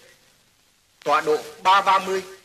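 A man in uniform speaks firmly.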